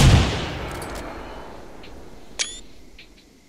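A shotgun fires with a loud boom that echoes away slowly.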